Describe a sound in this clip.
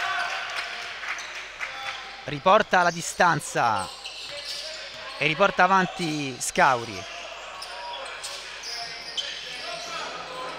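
Sneakers squeak on a court floor.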